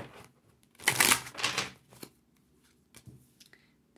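A card is laid down on a table with a soft tap.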